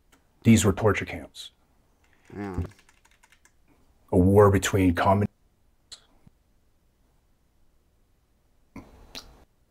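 A man speaks calmly and earnestly through a microphone.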